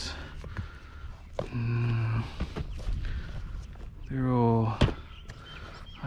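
Shoes knock together as a hand rummages through a plastic bin.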